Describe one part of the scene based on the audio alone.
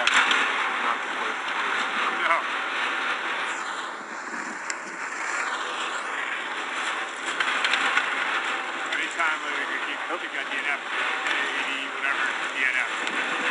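Skis scrape and hiss over hard snow.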